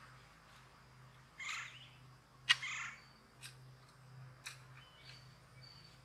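A garden fork digs into soil.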